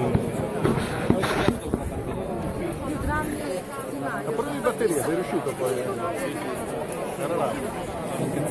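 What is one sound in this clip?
Footsteps of many people shuffle along a path.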